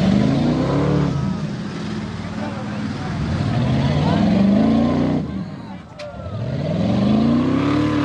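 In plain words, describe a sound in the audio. A truck engine revs up and down loudly nearby.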